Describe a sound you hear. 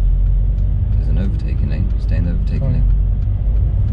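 A man speaks calmly nearby.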